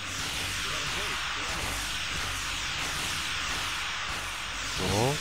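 Laser beams fire and crackle steadily in a space battle.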